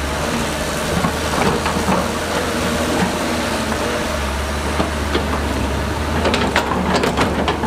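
A diesel excavator engine rumbles steadily.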